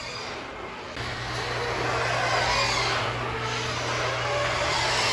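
A garage door opener motor hums steadily.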